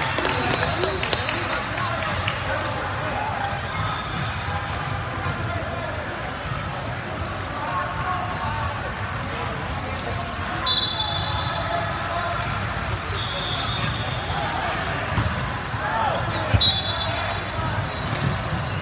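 A crowd of people chatters throughout a large echoing hall.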